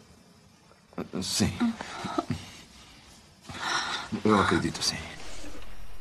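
A woman speaks up close in a strained, emotional voice.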